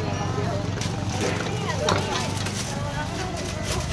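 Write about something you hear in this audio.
A knife chops on a cutting board.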